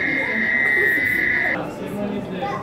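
A toad's call buzzes steadily through a loudspeaker.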